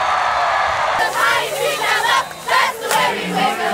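Young women shout and cheer excitedly up close.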